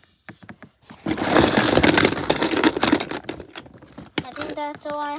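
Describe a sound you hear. Plastic wrapping rustles and crinkles close by.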